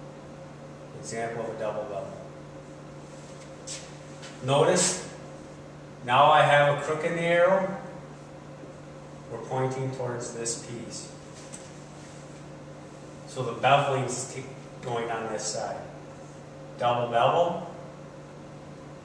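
A man speaks calmly in short phrases, as if explaining.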